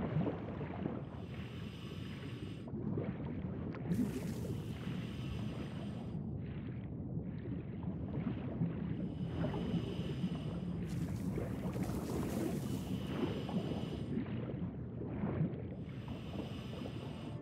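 A diver breathes through a regulator, with bubbles gurgling out in regular bursts.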